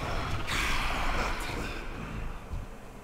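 A magic spell whooshes and crackles.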